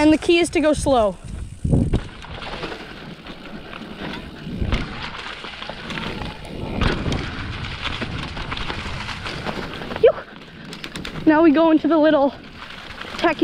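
Bicycle parts rattle over bumps.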